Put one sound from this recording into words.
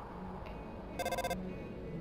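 Short electronic blips chirp rapidly in a quick burst.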